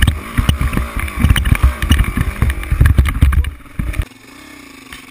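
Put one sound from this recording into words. A dirt bike engine revs hard and roars up close.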